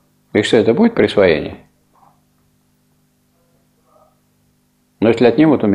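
An elderly man speaks calmly, pausing between phrases.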